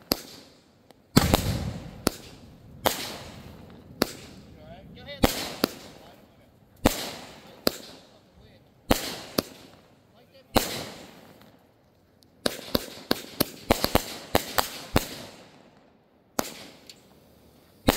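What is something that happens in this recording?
Fireworks whoosh as they rise into the sky.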